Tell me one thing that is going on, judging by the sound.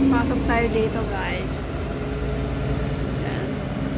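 A bus engine idles and rumbles nearby.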